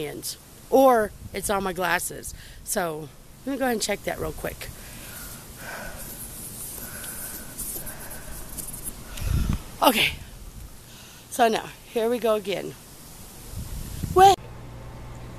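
A young woman talks close up.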